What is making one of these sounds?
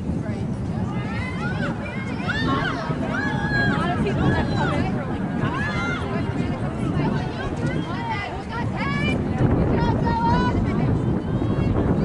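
Young women shout to each other across an open field outdoors.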